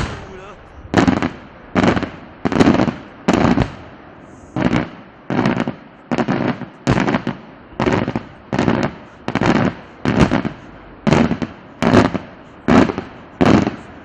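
Fireworks burst overhead one after another in a rapid steady rhythm, each bang echoing briefly.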